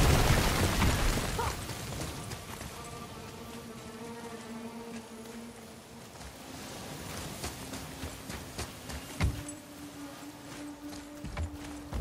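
Footsteps crunch on rock and gravel.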